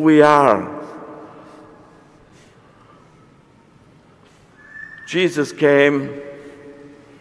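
An elderly man chants short phrases through a microphone in an echoing hall.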